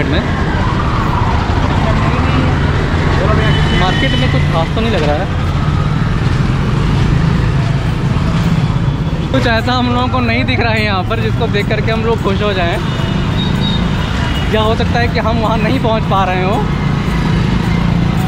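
Busy street traffic rumbles steadily outdoors.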